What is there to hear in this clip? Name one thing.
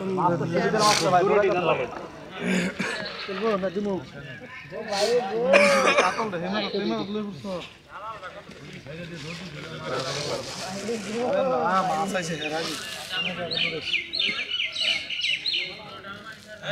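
Several men talk and call out to each other nearby, outdoors.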